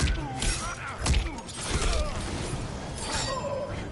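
A burst of magic whooshes and crackles.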